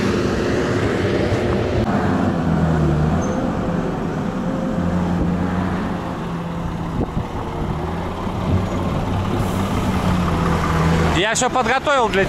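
A truck engine rumbles steadily nearby.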